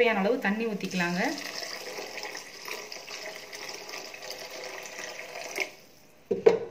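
Water pours into a pan with a steady splashing hiss.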